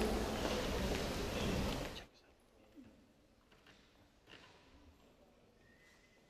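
A woman's high heels tap on a wooden stage.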